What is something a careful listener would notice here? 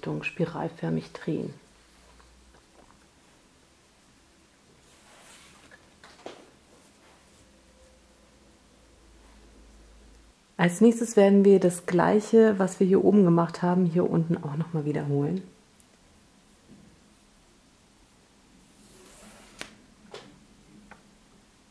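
Soft cotton cord rustles and brushes as hands tie knots.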